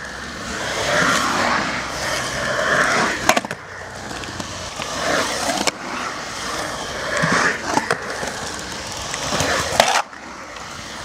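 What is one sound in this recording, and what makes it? Skateboard wheels roll and rumble across a concrete bowl.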